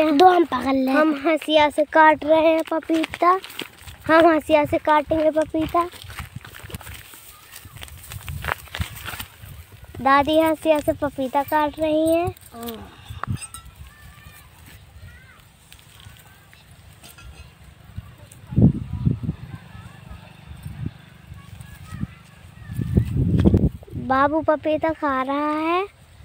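A young boy speaks close by with animation.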